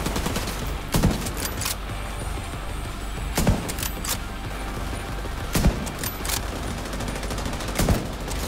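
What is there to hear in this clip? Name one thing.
Rifle shots boom loudly, one at a time.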